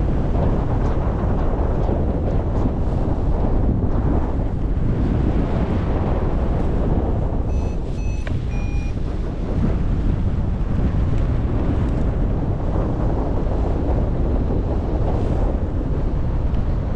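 Wind rushes steadily and loudly past the microphone.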